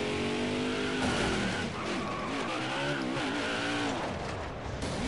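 Tyres screech as a stock car slides sideways.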